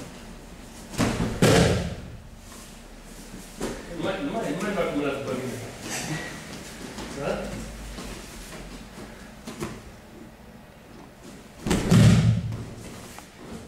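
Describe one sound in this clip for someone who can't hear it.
A body thuds heavily onto a mat.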